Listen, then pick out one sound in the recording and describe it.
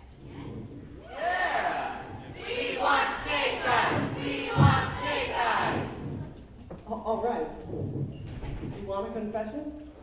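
A group of men and women sing together from a distant stage in a large echoing hall.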